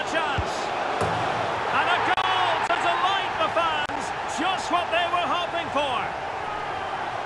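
A large crowd cheers loudly after a goal.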